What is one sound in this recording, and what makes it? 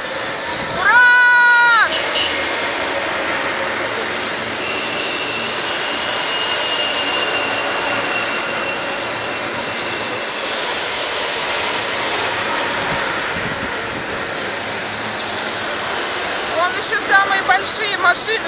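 Heavy trucks rumble past outdoors with loud engines.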